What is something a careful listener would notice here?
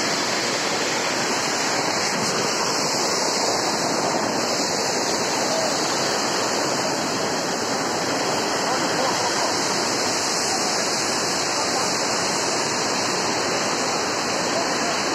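Water rushes steadily nearby.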